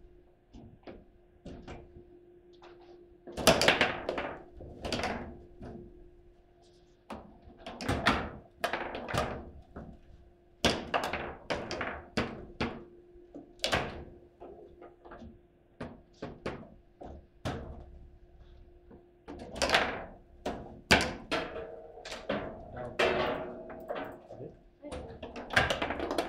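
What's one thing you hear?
Foosball rods slam and the ball cracks sharply against plastic players and the table walls.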